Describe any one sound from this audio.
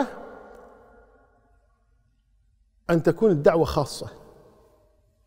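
An elderly man speaks calmly into a microphone in a reverberant room.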